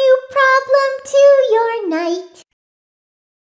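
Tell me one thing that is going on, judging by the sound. A woman speaks in a high, sing-song cartoonish voice.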